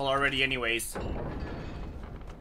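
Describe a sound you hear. A heavy door lock turns with a clunk.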